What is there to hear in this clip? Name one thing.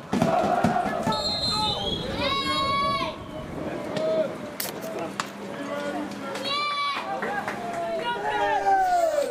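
Footballers shout to each other in the distance on an open field.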